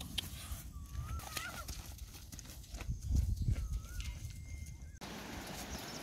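Footsteps swish through long grass.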